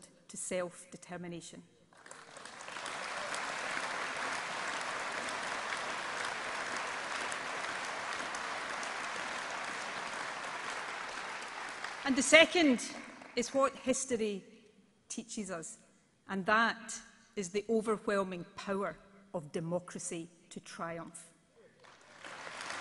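A woman speaks into a microphone, addressing a large echoing hall.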